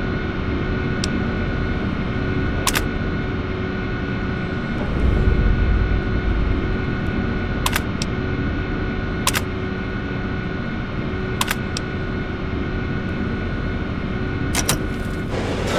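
Keys click on an old computer terminal.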